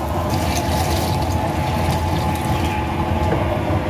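Milky liquid pours into a metal pot.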